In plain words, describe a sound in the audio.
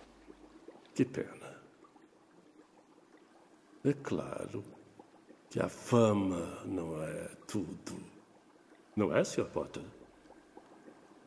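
A man speaks slowly in a low, cold voice.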